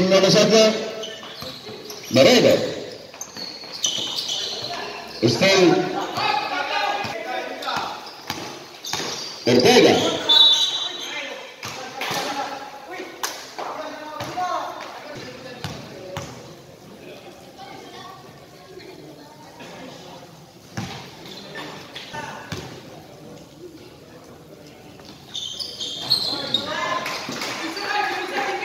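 Basketball players shout to each other in a large echoing hall.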